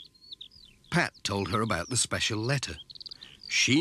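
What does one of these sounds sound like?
A man speaks calmly and close.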